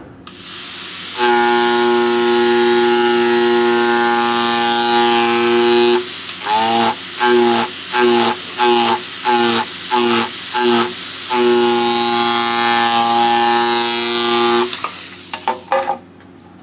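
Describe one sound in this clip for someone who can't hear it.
A small electric engraving pen buzzes with a high, steady whine, stuttering on and off in short bursts partway through.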